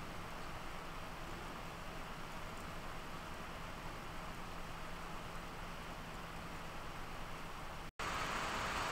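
A small computer fan whirs steadily.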